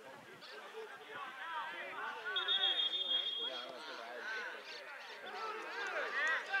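Players shout to each other across an open outdoor pitch.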